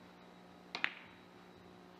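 Billiard balls click sharply together.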